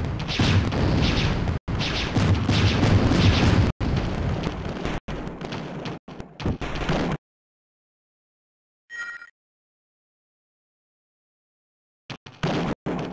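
Heavy gunfire and explosions rumble loudly.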